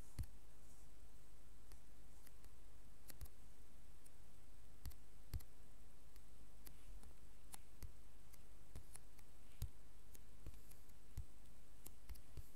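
Footsteps tap on hard blocks at an uneven pace.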